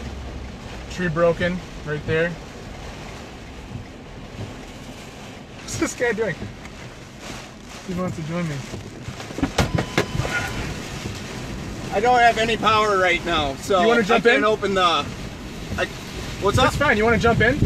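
A man speaks excitedly close by.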